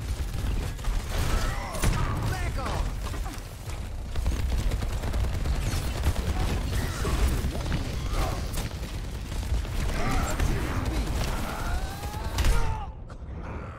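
An energy weapon fires rapid bursts of blasts.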